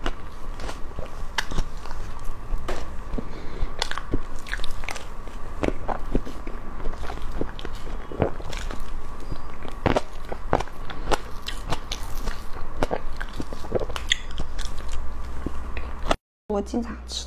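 A young woman eats soft cream cake with wet mouth sounds close to a microphone.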